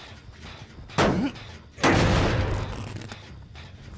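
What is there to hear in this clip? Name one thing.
A heavy weapon swings with a loud whoosh.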